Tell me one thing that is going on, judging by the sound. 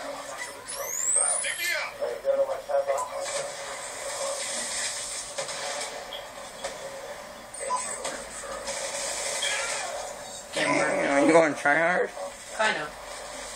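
Video game sounds play from a television across the room.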